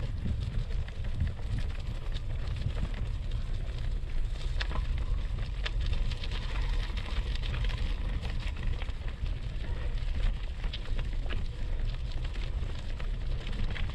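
Wind rumbles steadily across a microphone outdoors.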